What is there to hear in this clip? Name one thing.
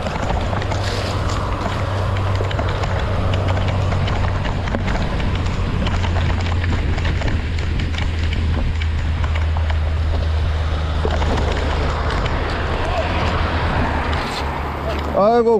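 Wind rumbles loudly across a close microphone.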